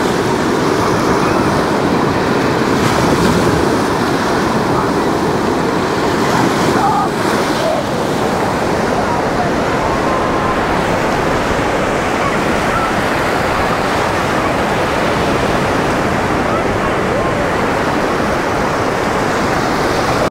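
Small waves break and wash up close onto the shore.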